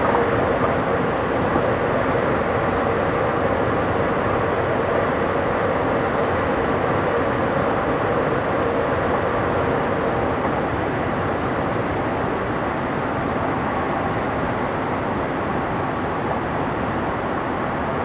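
A train rumbles steadily along the rails at high speed.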